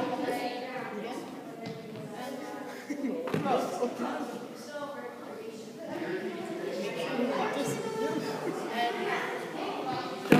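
Children talk and shout in a large echoing hall.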